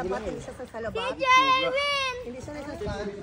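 A young girl squeals in a high voice.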